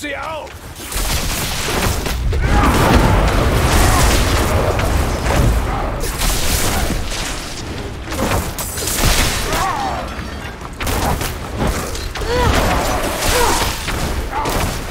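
Magic blasts and weapon blows crash in a fight.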